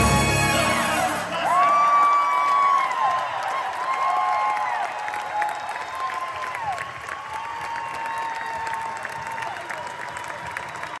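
A band plays along loudly.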